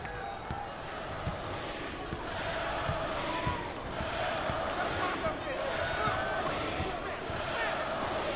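A basketball bounces with dull thumps on the floor.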